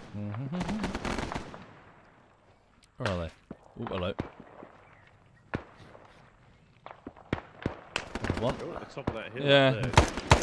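Rifle shots crack one after another.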